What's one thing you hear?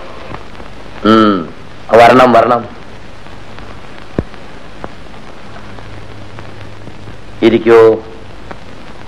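A man speaks loudly and sharply.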